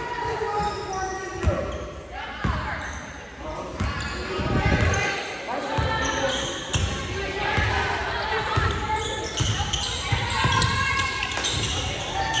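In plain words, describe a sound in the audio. Young players call out to each other across the court.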